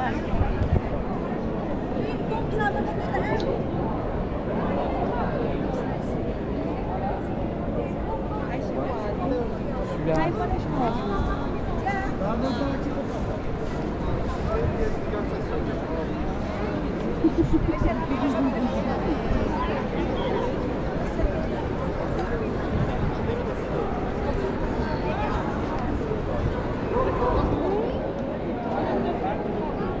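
A crowd of people chatters all around outdoors in an open square.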